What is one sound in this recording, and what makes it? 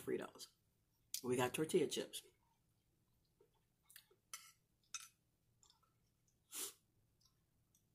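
A woman chews food softly close by.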